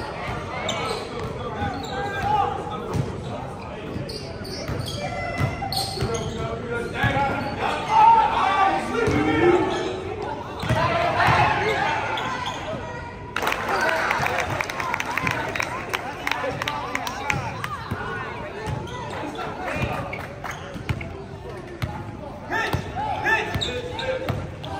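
Voices of young players and spectators echo around a large gym hall.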